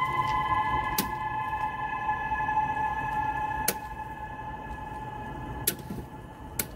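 Switches click sharply as a hand flips them.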